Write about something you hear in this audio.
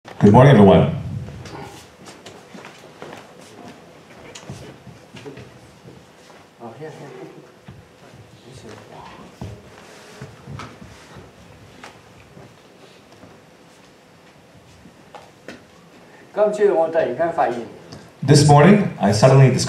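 An elderly man speaks calmly and quietly.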